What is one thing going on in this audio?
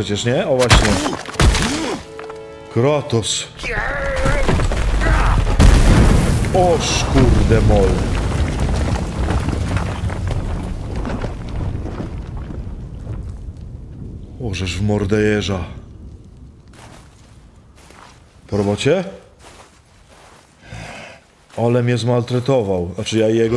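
An older man talks animatedly into a microphone, close by.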